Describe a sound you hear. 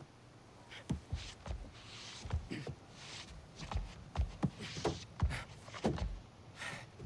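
A young man breathes hard and struggles to his feet.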